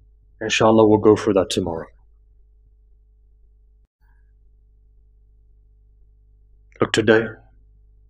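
A young man speaks into a microphone in short, measured phrases.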